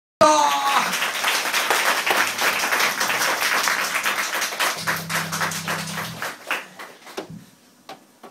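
A rock band plays loudly with electric guitar and crashing drums, then stops.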